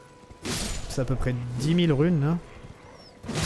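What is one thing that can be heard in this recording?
Wolves snarl and growl close by.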